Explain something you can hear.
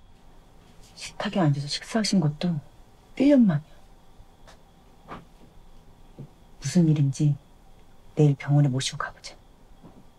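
A young woman speaks close by with emotion, in short bursts.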